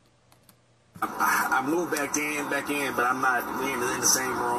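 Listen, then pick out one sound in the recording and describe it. Another man speaks through a small loudspeaker.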